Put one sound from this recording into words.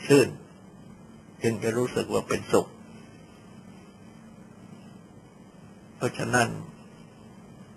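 An elderly man speaks calmly in short phrases, with long pauses.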